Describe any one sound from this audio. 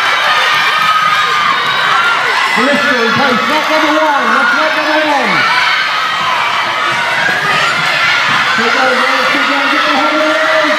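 Children shout and cheer loudly in an echoing hall.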